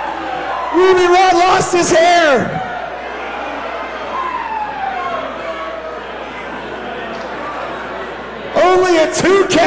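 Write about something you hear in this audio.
Spectators shout and cheer loudly.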